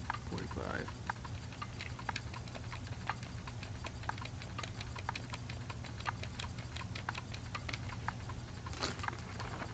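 A game timer ticks steadily.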